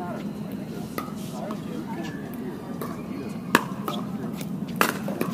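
Paddles strike a plastic ball with sharp pops.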